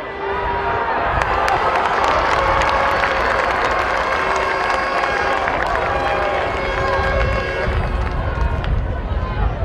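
A crowd of spectators cheers in a stadium.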